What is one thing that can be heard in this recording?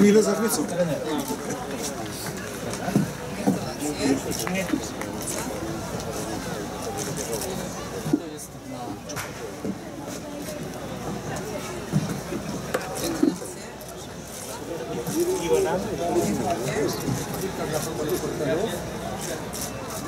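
A man talks.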